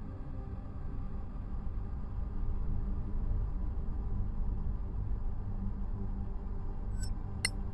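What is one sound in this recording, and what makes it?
A waterfall rumbles steadily into a pool.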